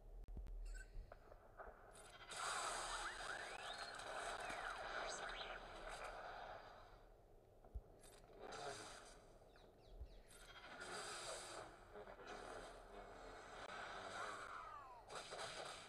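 Blasters fire in quick bursts.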